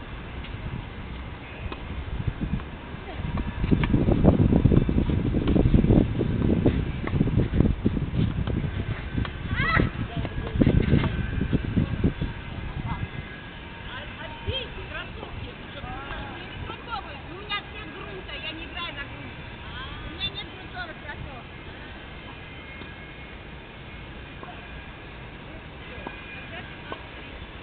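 A tennis ball is struck by a racket.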